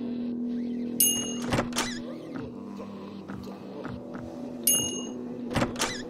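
A short bright chime rings.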